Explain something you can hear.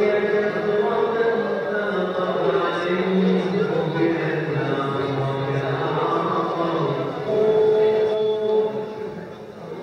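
A man chants melodically through a microphone in a large echoing hall.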